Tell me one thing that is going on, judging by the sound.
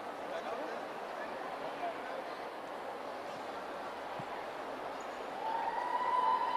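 A large crowd murmurs in a large echoing hall.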